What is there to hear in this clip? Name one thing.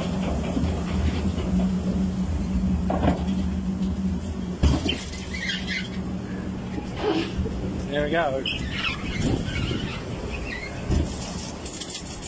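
Wind rumbles against the ride outdoors.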